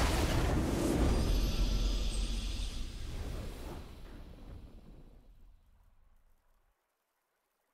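A triumphant game victory fanfare booms and slowly fades away.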